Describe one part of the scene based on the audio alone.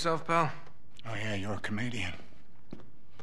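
A middle-aged man answers gruffly.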